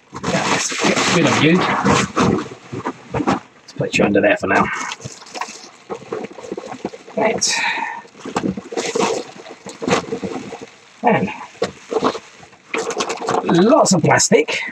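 Plastic bubble wrap rustles and crinkles close by as it is handled.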